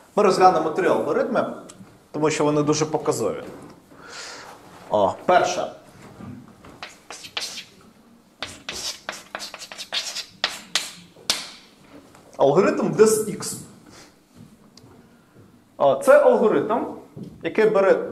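A man lectures calmly in an echoing room.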